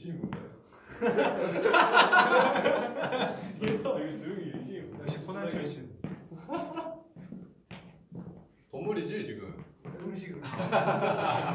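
Young men talk and laugh with animation nearby.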